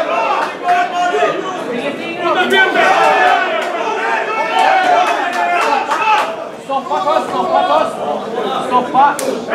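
Punches thud against a fighter's body.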